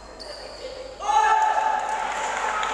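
Sports shoes squeak sharply on a hard court floor.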